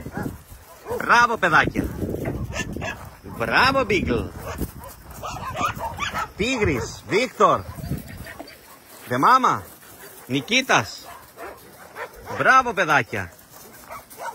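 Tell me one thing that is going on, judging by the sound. Dogs yelp and whine in short bursts as they play.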